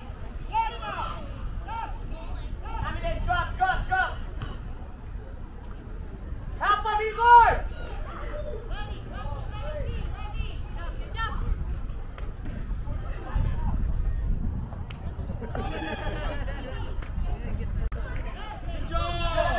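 Players shout and call to each other across an open outdoor field.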